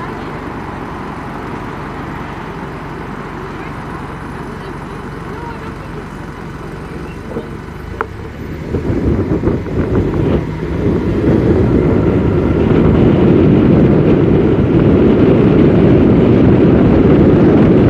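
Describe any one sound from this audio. A vehicle engine idles, then revs up and rumbles louder as it pulls away.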